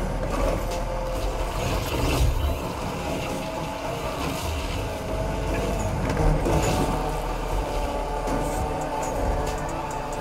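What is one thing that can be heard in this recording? A car engine roars steadily as the car drifts.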